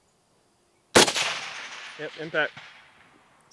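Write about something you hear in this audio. A rifle fires a single loud shot that echoes outdoors.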